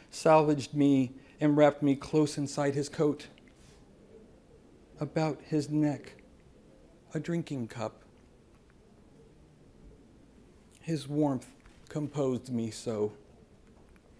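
A man reads aloud calmly into a microphone, with pauses.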